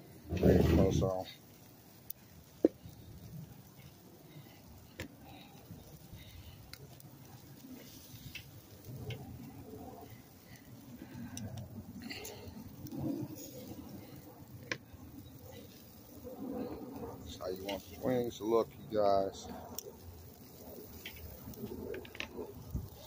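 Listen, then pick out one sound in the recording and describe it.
Metal tongs click and clatter.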